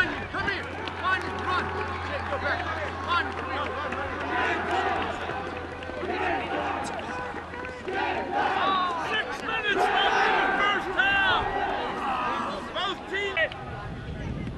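Several men talk and chatter nearby outdoors.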